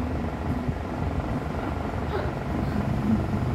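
A young woman laughs close by.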